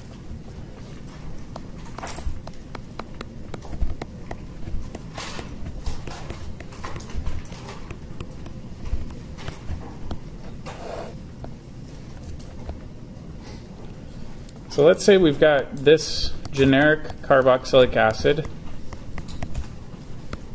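A stylus taps and scratches softly on a tablet.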